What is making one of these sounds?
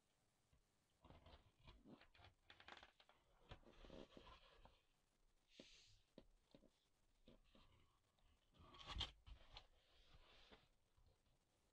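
Cardboard rustles and scrapes as hands handle a box.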